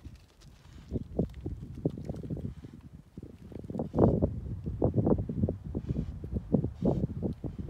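Dogs scramble over rocks and rustle through dry brush.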